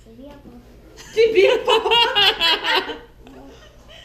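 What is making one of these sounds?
A young boy squeals with delight.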